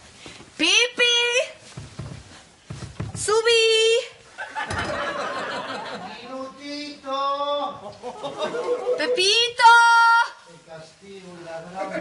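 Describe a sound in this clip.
A young woman moans and cries out loudly.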